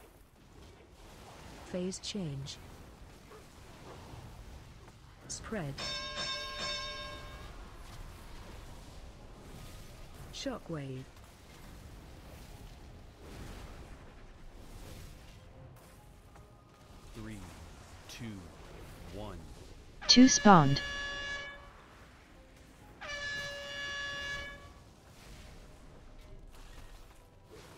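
Magic spells burst and whoosh in a fantasy battle.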